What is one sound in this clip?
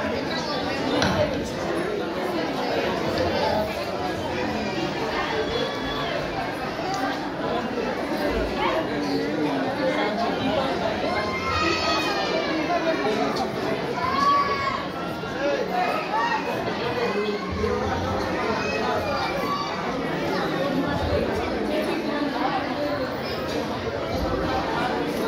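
Many women and girls chatter and call out at once in a room that echoes.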